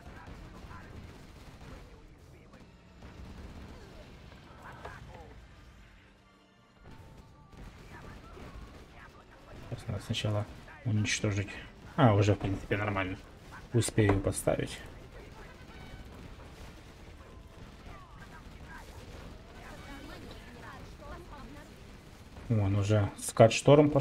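Tank cannons fire in rapid bursts.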